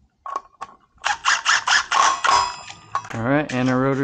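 A cordless impact driver rattles in short bursts.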